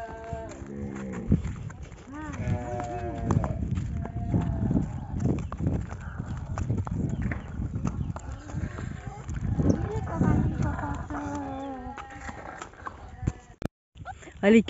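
A horse's hooves clop slowly on hard ground.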